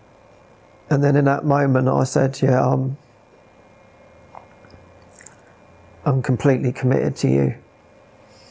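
A man speaks quietly and haltingly into a close microphone.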